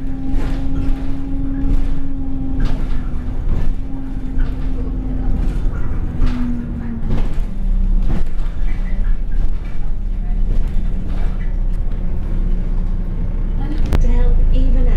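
A bus engine drones steadily, rising and falling in pitch as the bus drives.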